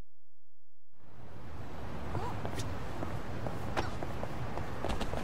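A city street at night hums with traffic and footsteps.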